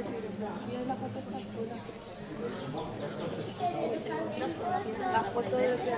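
Several people talk in the background, their voices echoing around a large rocky cave.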